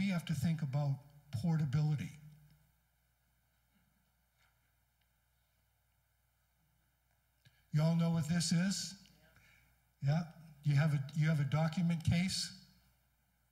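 A middle-aged man speaks with animation through a microphone in a large room.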